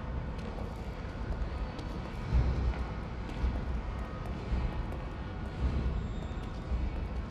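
Water trickles and flows steadily in an echoing tunnel.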